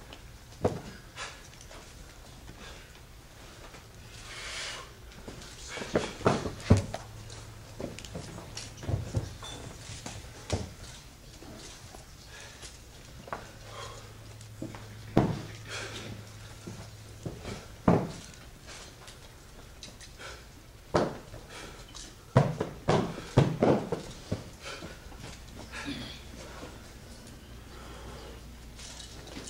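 Feet stamp and thud on a hard floor.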